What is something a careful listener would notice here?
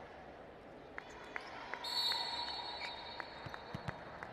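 A volleyball bounces repeatedly on a hard floor.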